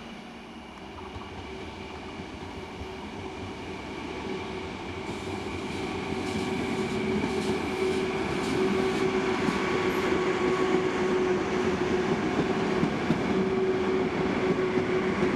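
A train approaches and rushes past with a loud, rising roar.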